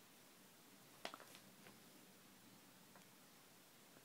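Pages of a book rustle under a child's hand.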